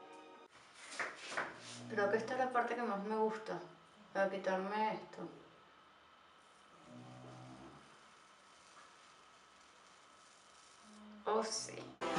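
A woman talks calmly close by, with pauses, in a small echoing room.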